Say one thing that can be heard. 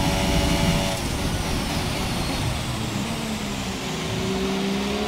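A racing car engine winds down sharply as the car brakes for a corner.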